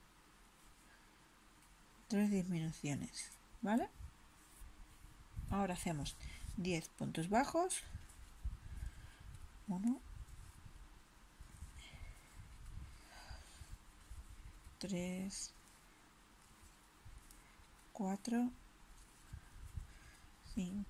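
A crochet hook softly scrapes as yarn is pulled through stitches.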